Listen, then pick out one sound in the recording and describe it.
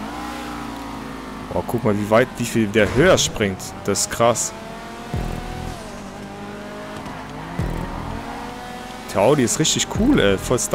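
A race car engine roars steadily at high revs.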